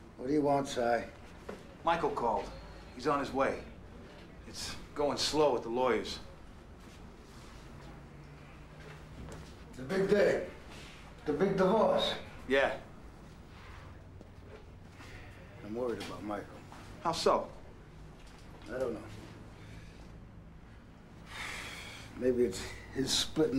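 A middle-aged man speaks nearby with animation.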